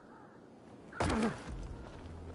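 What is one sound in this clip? Footsteps thud on a paved street.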